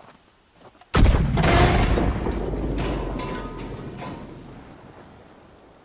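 A loud explosion booms and rumbles away slowly.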